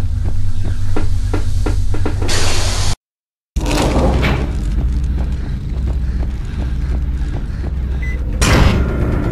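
Footsteps tap on a hard floor at a steady pace.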